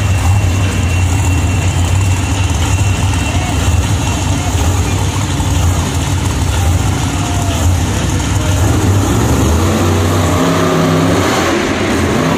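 A monster truck engine roars loudly in a large echoing arena.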